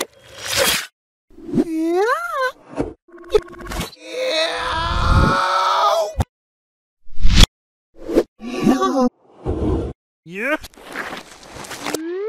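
High, cartoonish voices squeal and chatter in short bursts.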